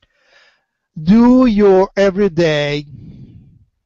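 An older man sings loudly into a headset microphone, heard through an online call.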